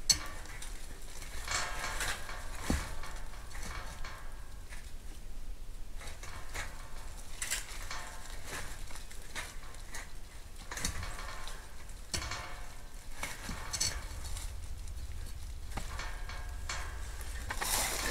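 Metal wire clinks and rattles.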